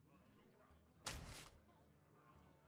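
A loud magical whoosh bursts out and fades.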